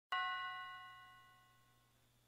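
An electronic keyboard sounds a single ringing note that fades out.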